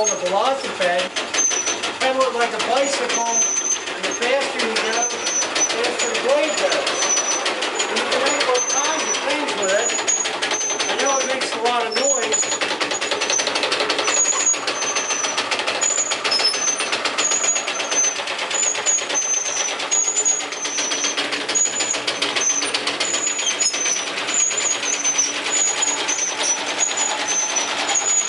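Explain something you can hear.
A pedal-powered scroll saw cuts rapidly through a block of wood.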